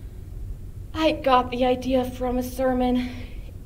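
A young woman sings out loudly.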